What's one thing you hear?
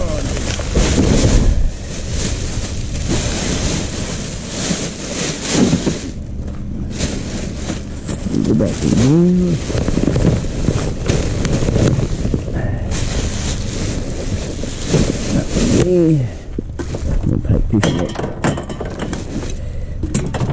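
Plastic bin bags rustle and crinkle close by.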